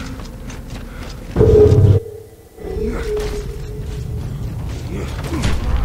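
Heavy boots crunch on rocky ground.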